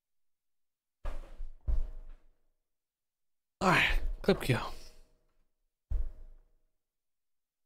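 A young man speaks into a microphone in short bursts.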